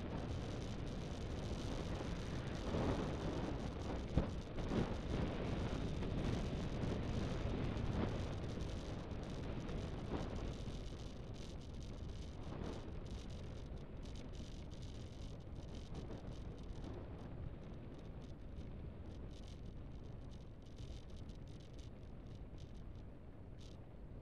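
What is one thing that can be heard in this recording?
Tyres roll steadily over asphalt.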